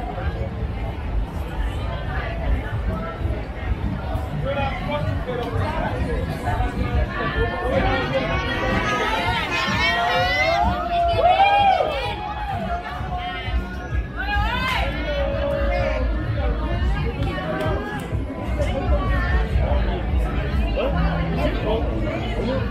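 Young women chatter and call out on a busy street.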